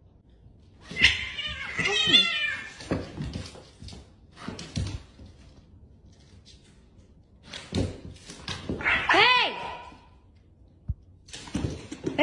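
Cats' paws thump on a wooden floor.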